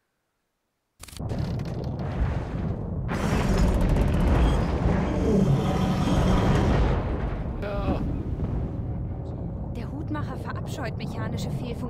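A deep rumbling roar of wind fills an echoing cavern.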